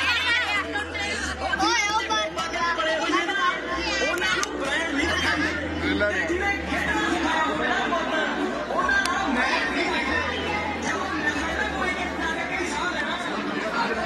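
Many women chatter loudly nearby.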